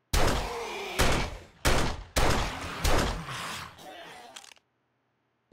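A pistol fires several loud shots with echoes.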